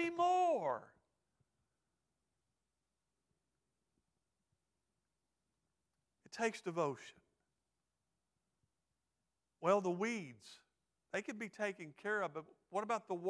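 A middle-aged man speaks into a microphone with pauses, in an expressive preaching manner.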